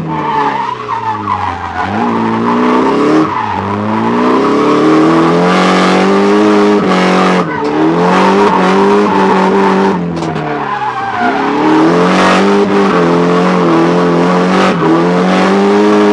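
A car engine roars loudly from inside the cabin, revving up and down again and again.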